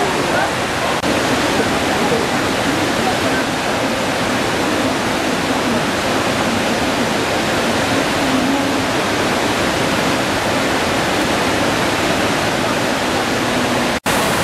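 A waterfall roars over boulders.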